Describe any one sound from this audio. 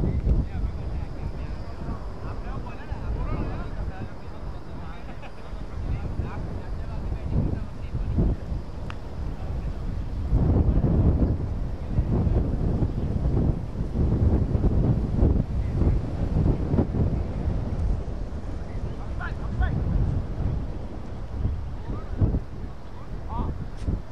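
Wind rumbles across an open field outdoors.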